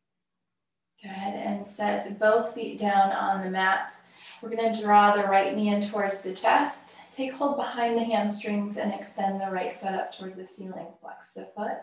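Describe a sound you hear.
A woman speaks calmly and steadily, close to a microphone.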